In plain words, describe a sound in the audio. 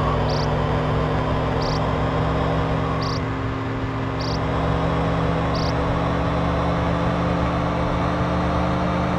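A car engine hums steadily at high speed.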